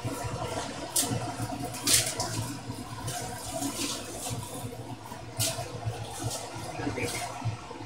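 Dishes clatter and knock.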